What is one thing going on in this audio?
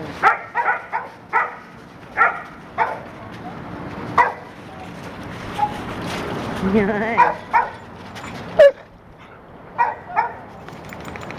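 Dogs bark loudly and sharply close by.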